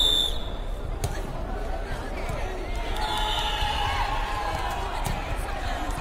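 A volleyball is struck with a hand with a sharp slap.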